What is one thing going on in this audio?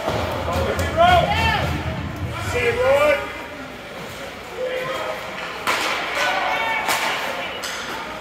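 Spectators shout and call out from the stands.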